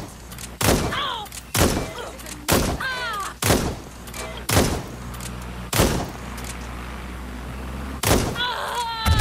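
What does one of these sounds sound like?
Shotgun blasts fire one after another.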